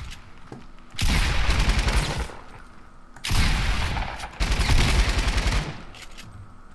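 Rapid gunfire bursts out loudly.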